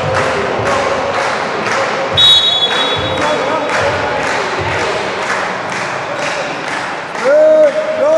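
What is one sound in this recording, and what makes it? Spectators clap in steady rhythm in a large echoing hall.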